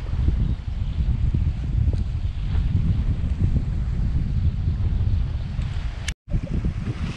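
Small waves lap gently against rocks.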